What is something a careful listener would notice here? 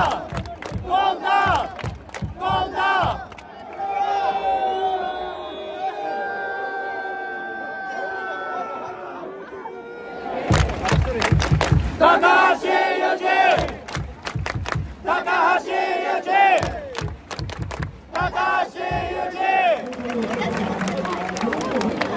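A crowd of fans chants loudly in unison outdoors.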